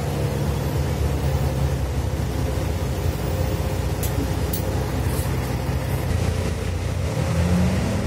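A bus rattles as it drives.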